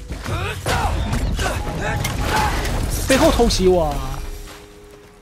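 Blades swing and strike with heavy, crackling impacts.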